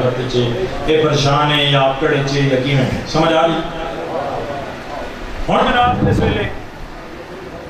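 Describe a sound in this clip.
A young man speaks with passion into a microphone, heard through loudspeakers in an echoing space.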